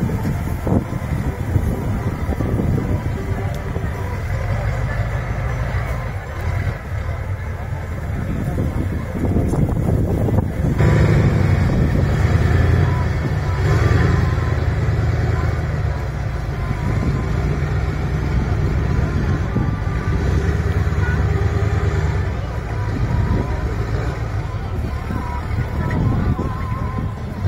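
A heavy truck engine rumbles loudly close by, revving as it climbs.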